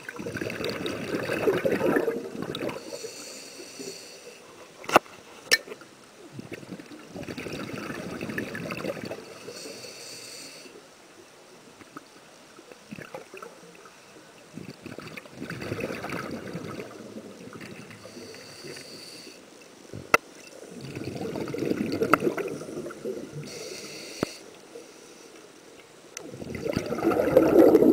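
Scuba exhaust bubbles gurgle and rumble underwater in regular bursts.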